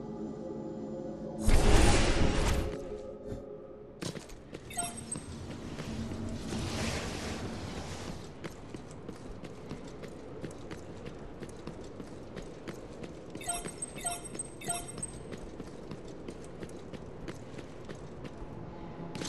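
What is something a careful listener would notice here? Game music plays steadily.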